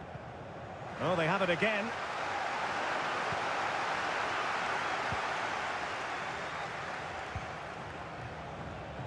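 A large crowd roars and murmurs in a stadium.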